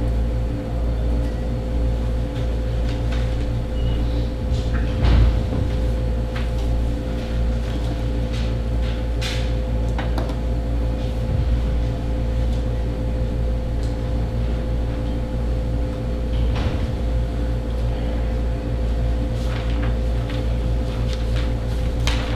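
An air conditioner hums steadily.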